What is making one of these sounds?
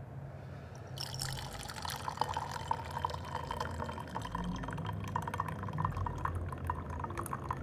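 Tea splashes steadily as it is poured into a glass pitcher.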